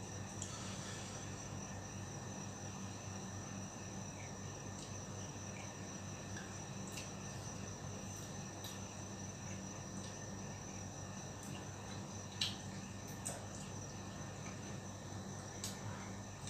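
Fingers scrape food against a metal bowl.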